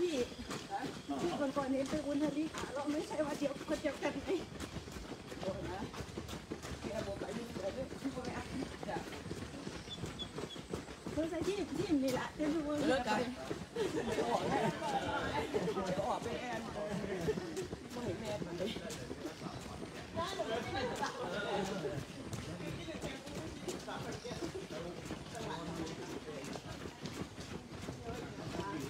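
Several men and women talk close by, outdoors.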